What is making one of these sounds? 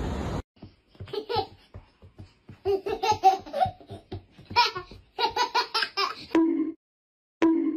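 A toddler squeals and babbles excitedly.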